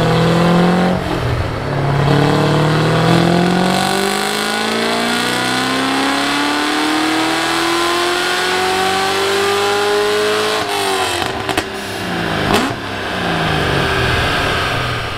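A loud car engine roars close by, revving up slowly and then dropping back.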